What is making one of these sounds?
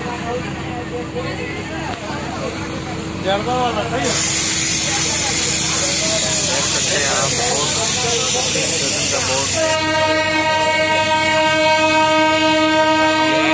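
A train rolls steadily along the tracks.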